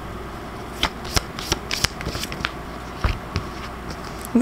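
Cards tap and slide against one another.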